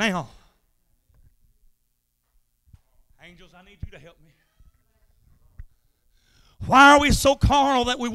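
A man speaks with animation through a microphone, with long pauses.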